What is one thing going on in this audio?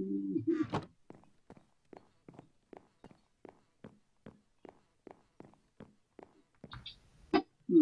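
Footsteps tap steadily on wooden boards.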